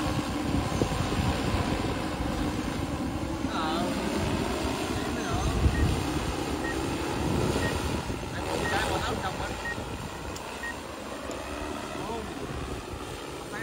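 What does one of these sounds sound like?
A drone's propellers buzz steadily in the distance.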